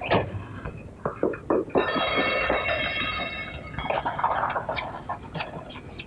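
A horse-drawn cart rattles past.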